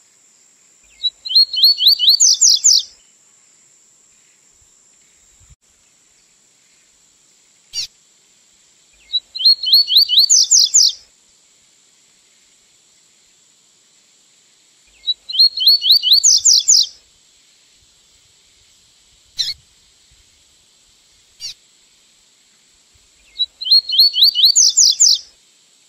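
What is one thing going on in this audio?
A small songbird sings loud, quick trilling phrases, repeating every few seconds.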